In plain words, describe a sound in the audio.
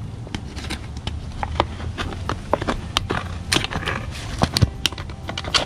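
A plastic bottle crinkles and crackles in a gloved hand.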